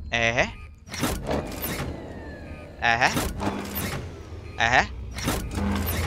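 A heavy lever clunks as it is pulled.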